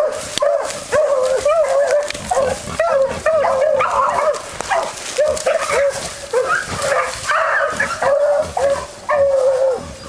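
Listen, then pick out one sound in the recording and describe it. A bird calls over and over with short, rapid yelping cries nearby.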